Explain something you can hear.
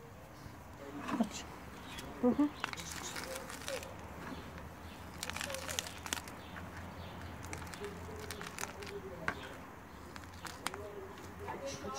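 Hands scrape a plastic seed tray through loose potting soil.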